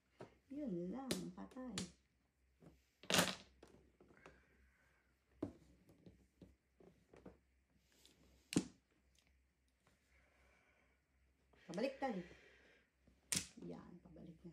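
Mahjong tiles clack sharply against each other on a table.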